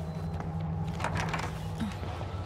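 A wooden door opens.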